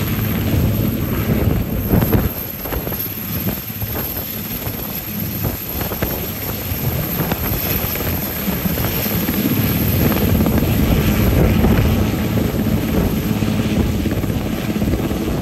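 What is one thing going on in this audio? A helicopter's engine roars with a high whine.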